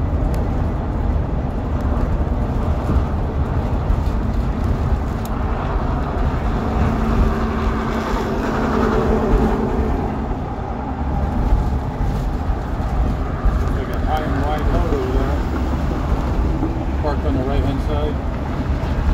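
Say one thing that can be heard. A vehicle's engine rumbles steadily.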